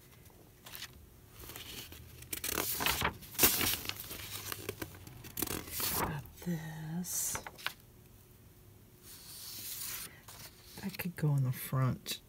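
Paper rustles and crinkles as sheets are handled.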